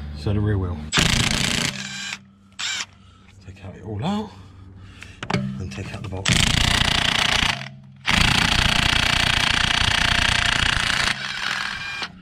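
A cordless impact wrench whirs in loud bursts, rattling on wheel nuts.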